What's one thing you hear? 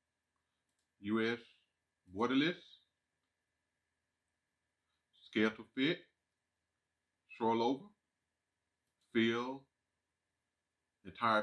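A man speaks calmly into a microphone in short phrases with pauses.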